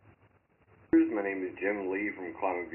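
A middle-aged man talks calmly into a microphone, heard through a speaker.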